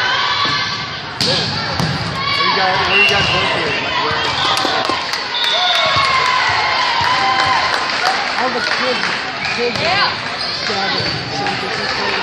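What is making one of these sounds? A crowd of young women and spectators shouts and cheers in a large echoing gym.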